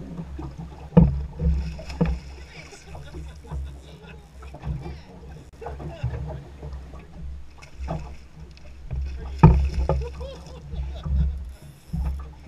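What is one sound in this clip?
A fish splashes and thrashes in the water nearby.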